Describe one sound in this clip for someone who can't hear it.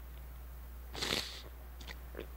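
A man sniffs or clears his throat.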